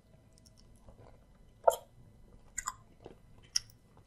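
A man licks and sucks sauce from his fingers with loud wet smacks.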